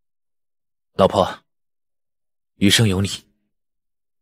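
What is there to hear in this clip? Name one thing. A young man speaks gently nearby.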